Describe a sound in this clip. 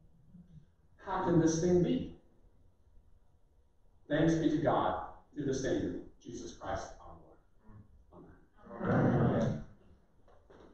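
An elderly man speaks slowly into a microphone in an echoing hall.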